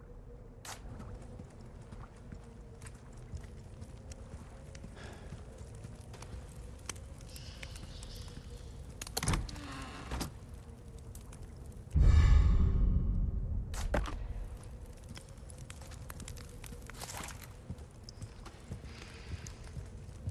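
Footsteps thud on wooden and stone floors.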